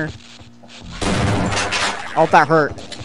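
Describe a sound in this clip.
A shotgun fires in loud blasts.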